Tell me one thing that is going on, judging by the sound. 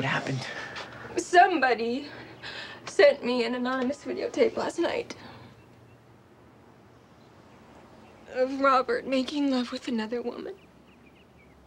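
A young woman speaks quietly and tearfully, close by.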